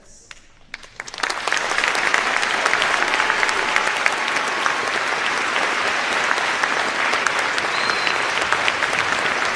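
A large crowd applauds loudly.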